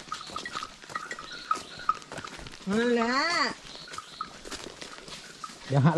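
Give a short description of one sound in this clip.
A cow's hooves thud softly on a muddy dirt path.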